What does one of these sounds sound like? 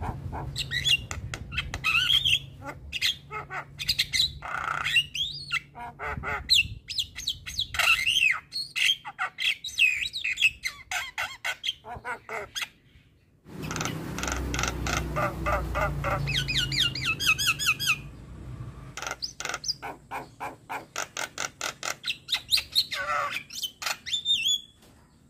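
A bird sings close by in rapid chirps, whistles and trills.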